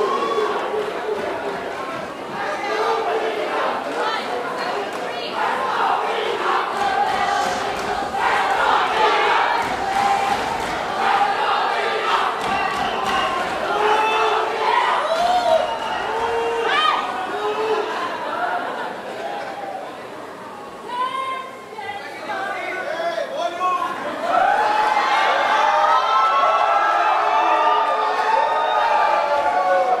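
A group of young women sing together in a large echoing hall.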